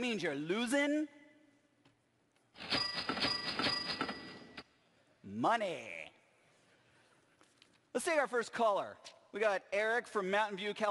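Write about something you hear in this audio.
A middle-aged man shouts with animation close to a microphone.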